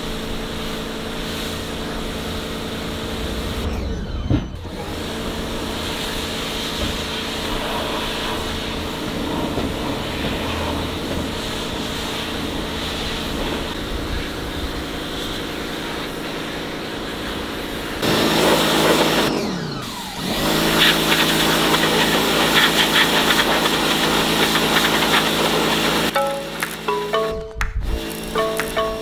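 A pressure washer motor hums steadily.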